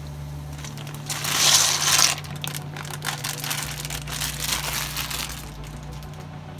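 Dry pasta rattles and pours out of a plastic bag into water.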